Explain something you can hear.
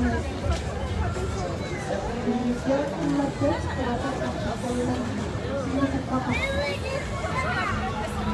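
A large outdoor crowd chatters in a busy murmur of many voices.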